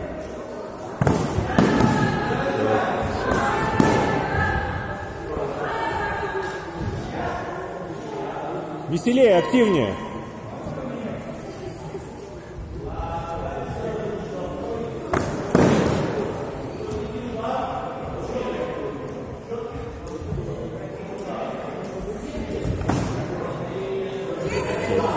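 A man talks and calls out loudly in a large echoing hall.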